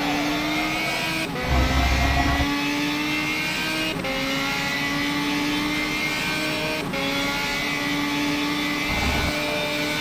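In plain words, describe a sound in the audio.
A racing car engine revs high and drops briefly with each gear shift.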